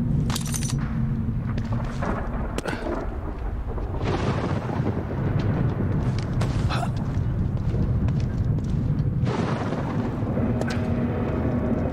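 Footsteps scuff softly on hard ground.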